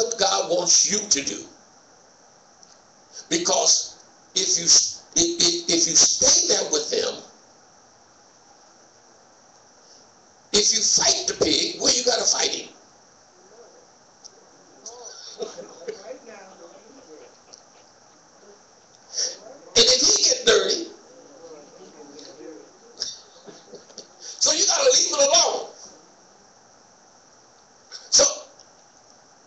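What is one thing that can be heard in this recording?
A man speaks calmly in bursts through a microphone in an echoing hall.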